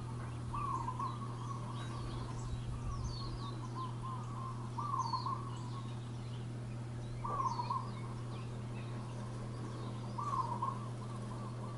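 A bird splashes in shallow water.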